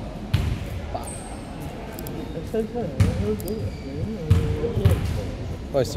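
A basketball bounces on a hard court in an echoing hall.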